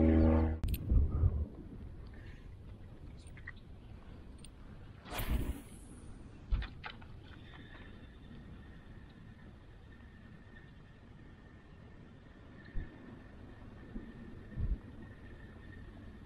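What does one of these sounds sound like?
Small waves lap softly against a kayak hull.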